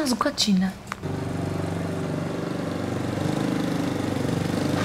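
A motorbike engine hums as it rides closer.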